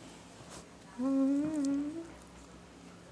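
A dog whines loudly close by.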